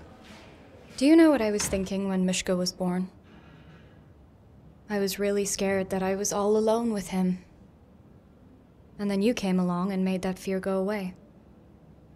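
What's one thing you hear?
A young woman speaks calmly and earnestly, close by.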